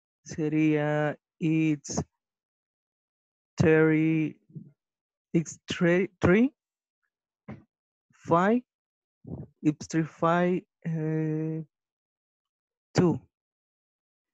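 A woman speaks slowly and clearly over an online call, like a teacher.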